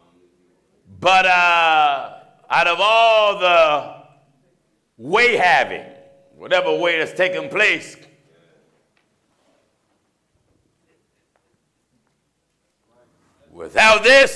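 A man preaches loudly and with passion into a microphone.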